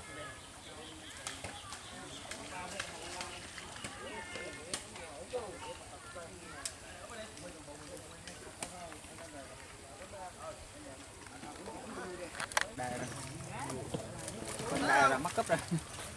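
Several men talk and call out to each other at a distance, outdoors.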